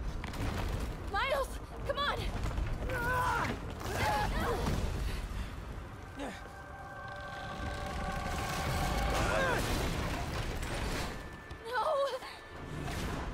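A young woman shouts urgently.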